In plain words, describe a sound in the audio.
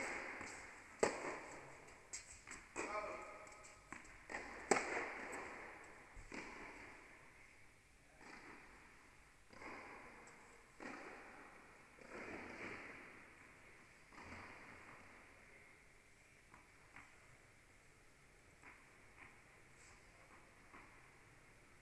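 A tennis ball is struck by a racket with sharp pops, echoing in a large indoor hall.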